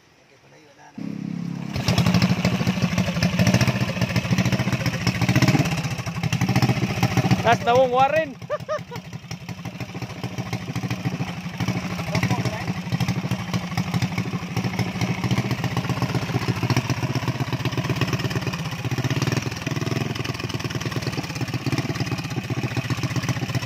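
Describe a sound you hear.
A small engine starts and runs with a loud, rapid chugging roar.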